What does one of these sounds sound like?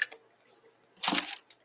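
A hand brushes across paper with a rustle.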